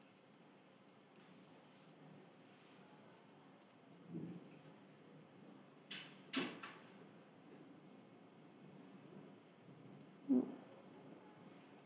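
A marker scratches and taps on paper.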